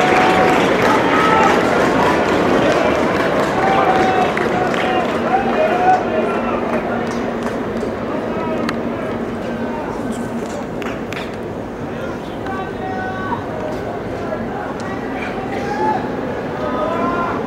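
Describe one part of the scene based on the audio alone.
A crowd chants and cheers across an open stadium.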